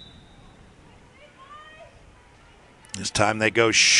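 A soccer ball is kicked hard.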